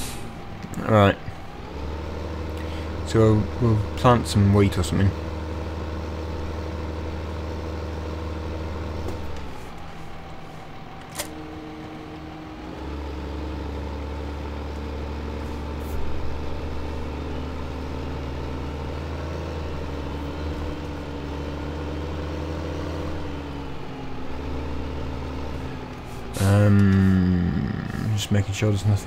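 A tractor engine hums steadily, rising and falling as it drives.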